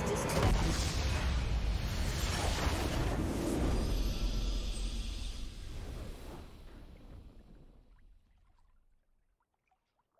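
A game's victory fanfare swells loudly and fades away.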